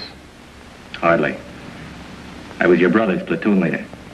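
A second man answers in a low voice nearby.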